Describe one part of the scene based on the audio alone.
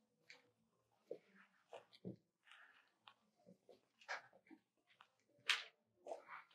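A pencil scratches and rasps across paper in quick strokes.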